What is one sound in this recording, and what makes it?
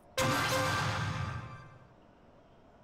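A video game's chime rings out loudly and fades away.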